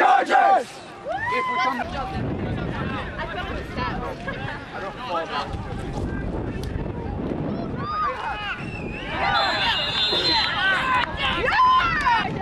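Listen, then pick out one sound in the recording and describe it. Young men shout across an open field during a game.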